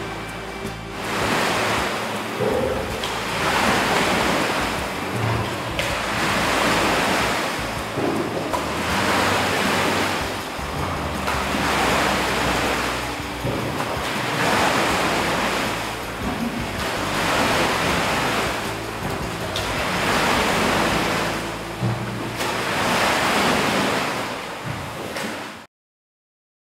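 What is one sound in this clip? Oars churn water in a steady rhythm of strokes.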